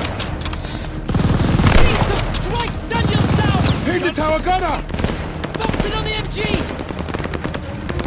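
A rifle bolt clicks and clacks during a reload.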